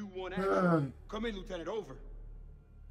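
A young man calls urgently over a radio.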